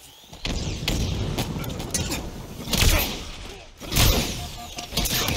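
An energy blade swings with a sharp electric whoosh.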